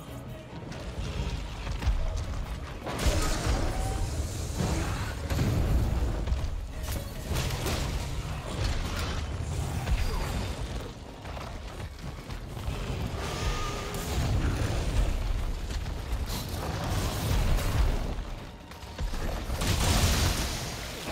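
A blade slashes and strikes with heavy thuds.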